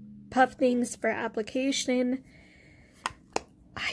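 A small plastic case clicks and rattles as it is handled.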